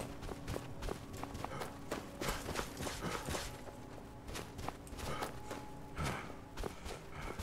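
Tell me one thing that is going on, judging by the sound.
Footsteps crunch through snow at a steady walking pace.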